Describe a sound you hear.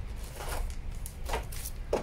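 Paper rustles.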